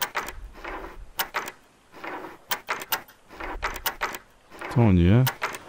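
Metal picks scrape and click inside a lock.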